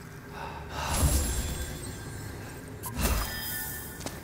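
A sword clashes against a shield.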